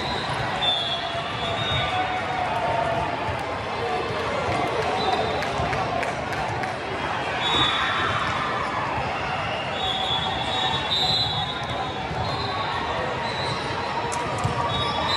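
A large crowd chatters and cheers in a big echoing hall.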